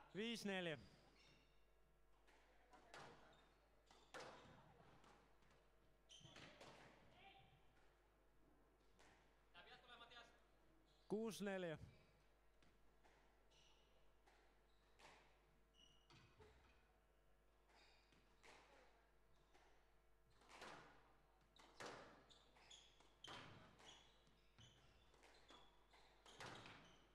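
A squash ball smacks sharply against the walls and racquets, echoing in a large hall.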